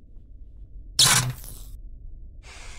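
A cabinet door swings open.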